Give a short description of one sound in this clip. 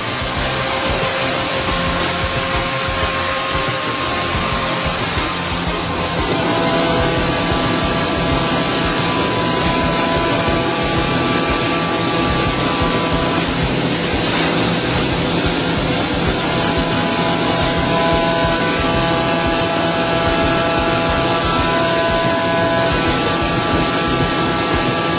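A milling machine whines steadily as its cutter grinds into metal.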